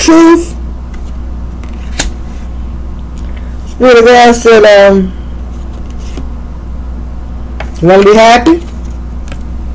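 Playing cards shuffle softly between hands.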